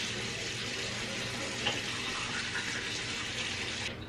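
A woman brushes her teeth with quick scratchy strokes.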